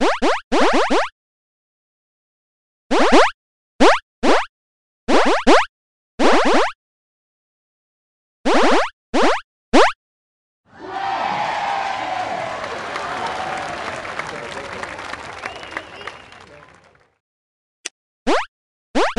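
Short game sound effects blip repeatedly with quickly falling pitch.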